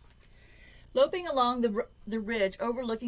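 A woman reads aloud expressively, close by.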